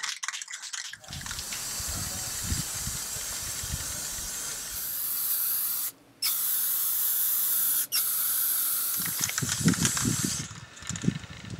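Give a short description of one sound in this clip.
A spray can hisses steadily in long bursts.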